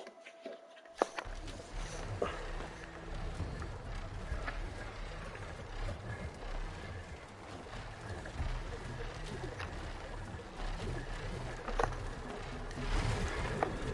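Wind rushes loudly and steadily while gliding through the air.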